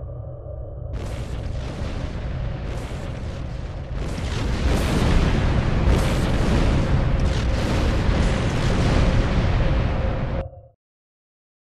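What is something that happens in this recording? A spaceship engine hums and roars steadily, then cuts off.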